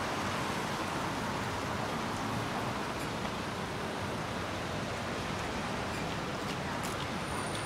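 A car engine hums as it drives past.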